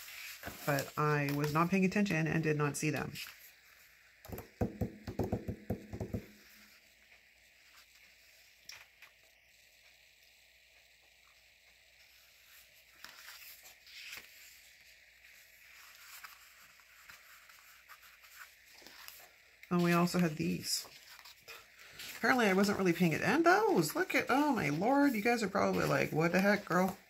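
Paper rustles softly as sticker sheets are handled and flipped.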